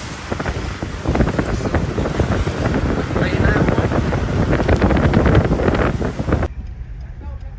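Wind buffets loudly outdoors.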